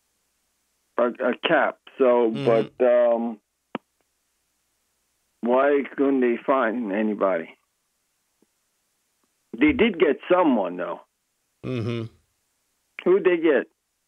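A middle-aged man speaks calmly into a close microphone, in short bursts with pauses.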